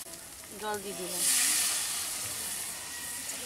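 Water pours and splashes into a metal pan.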